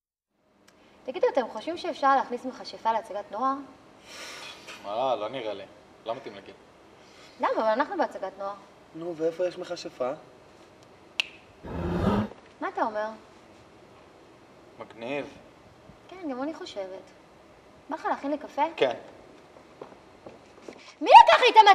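A young woman talks calmly nearby.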